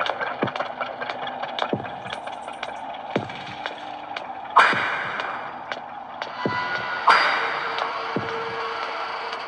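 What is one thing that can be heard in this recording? Quick footsteps tap as a game character runs.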